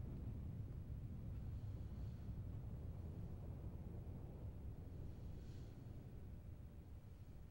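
Water pours steadily down a waterfall with a low rumble.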